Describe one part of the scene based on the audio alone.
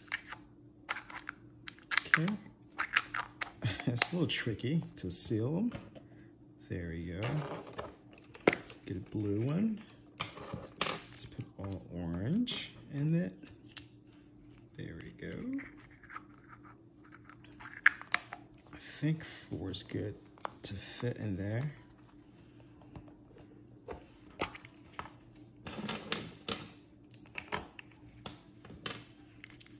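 Plastic eggs click as they are pulled open and snapped shut.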